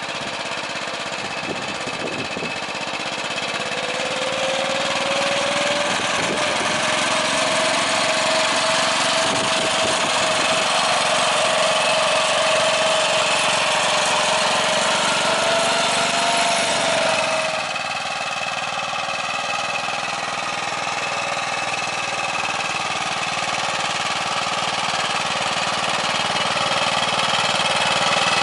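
A small engine of a walking tractor chugs steadily up close.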